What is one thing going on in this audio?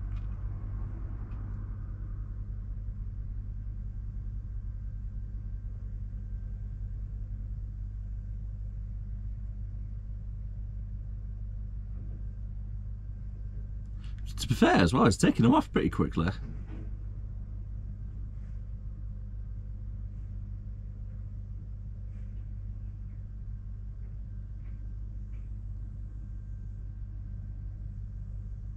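A truck engine idles steadily with a low hum.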